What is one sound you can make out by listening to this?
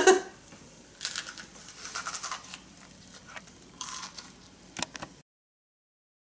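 A young woman bites and chews crunchy food.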